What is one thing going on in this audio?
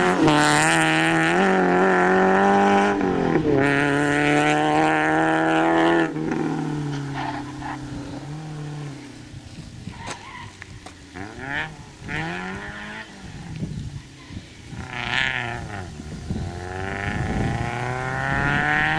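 A rally car engine roars at high revs, shifting gears as it races away and fades.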